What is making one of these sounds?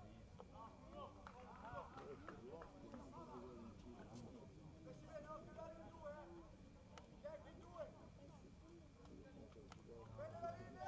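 Several men talk and call out nearby, outdoors.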